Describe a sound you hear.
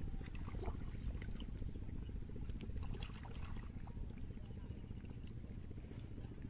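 Water splashes and drips as plants are pulled from a pond.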